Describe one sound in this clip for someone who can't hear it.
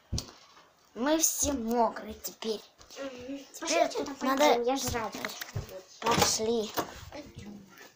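A young girl talks close by in a high, animated voice.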